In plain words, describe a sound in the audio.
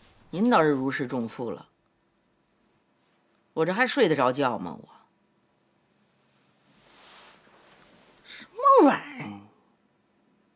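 A middle-aged woman speaks close by in short, pointed remarks.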